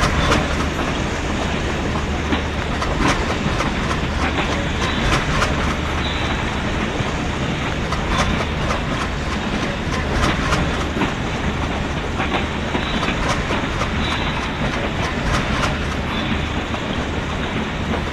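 A diesel locomotive engine roars close by.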